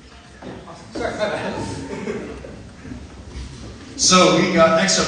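A young man speaks into a microphone in an echoing hall.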